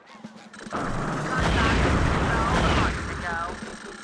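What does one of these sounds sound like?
Cartoon bubbles burst and gurgle.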